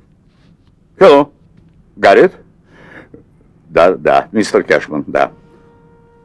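An elderly man shouts loudly into a telephone.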